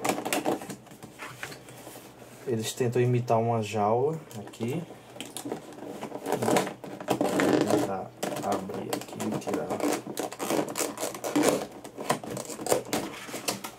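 Plastic packaging crinkles as it is pulled and pushed about.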